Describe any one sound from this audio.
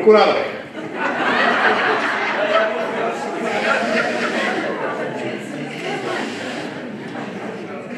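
A brass band plays a lively tune.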